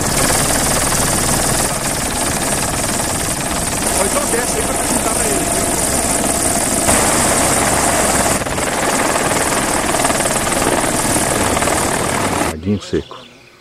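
A helicopter's engine and rotor roar steadily.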